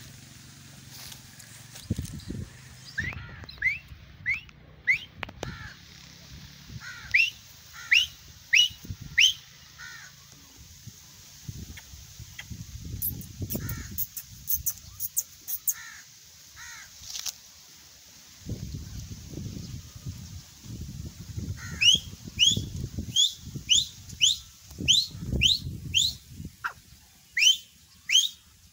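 Wind rustles through grass outdoors.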